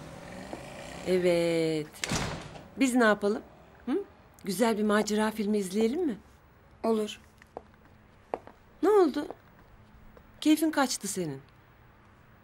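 A woman speaks with animation nearby.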